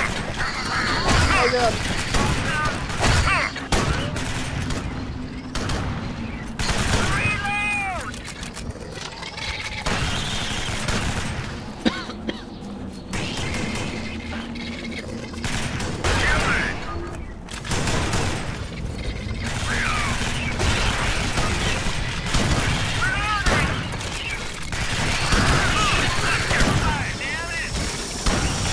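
Alien creatures shriek and screech.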